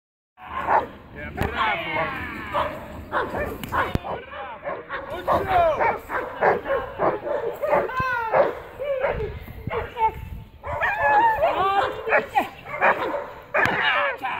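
A dog growls and barks fiercely.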